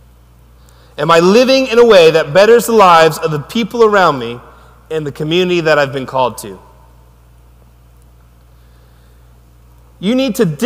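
A man speaks calmly through a microphone in a large echoing hall, pausing between phrases.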